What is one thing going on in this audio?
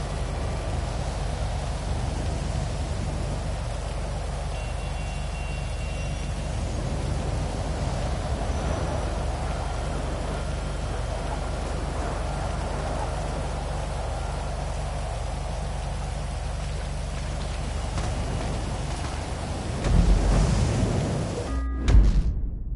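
Rain patters steadily outdoors.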